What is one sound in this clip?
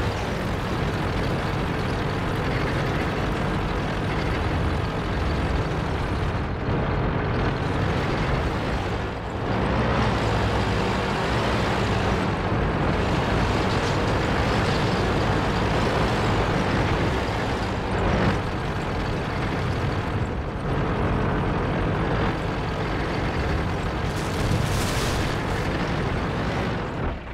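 A heavy tank engine rumbles steadily as the tank drives.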